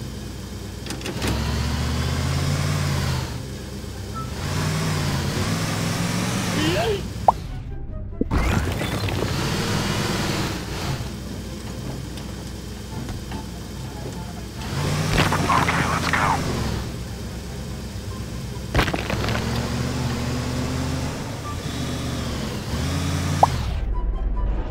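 An engine revs up and down.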